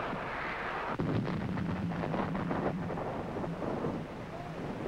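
A shell explodes in the distance with a dull thud.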